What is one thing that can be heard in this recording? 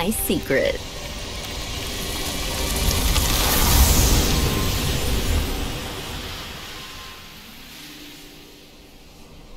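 A loud rushing whoosh swells and fades.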